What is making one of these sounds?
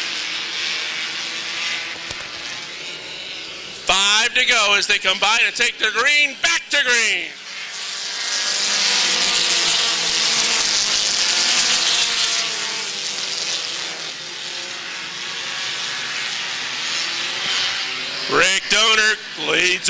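Several race car engines roar and whine as the cars speed past.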